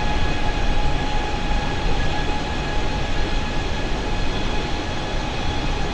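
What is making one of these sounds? Jet engines roar steadily with a constant whine.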